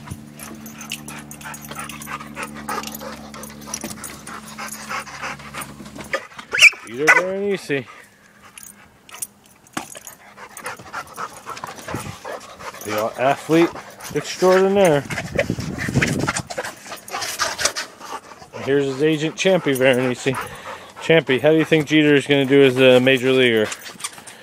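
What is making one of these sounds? A large dog's claws click and patter on a wooden deck.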